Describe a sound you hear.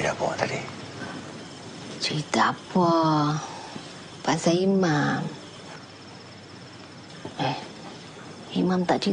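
A middle-aged woman speaks in an anxious, pleading voice.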